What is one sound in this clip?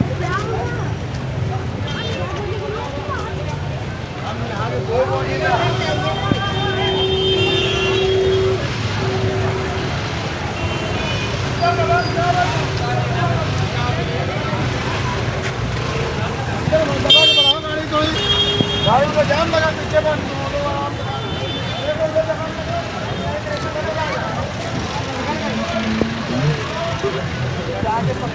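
Busy street traffic rumbles steadily all around.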